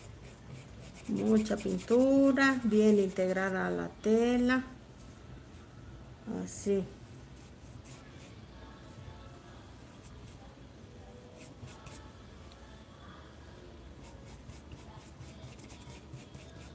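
A paintbrush dabs softly on fabric.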